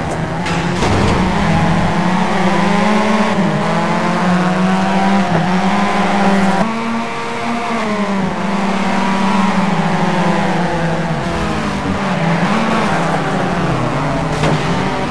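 A four-cylinder turbo hatchback's engine revs hard through the gears while racing.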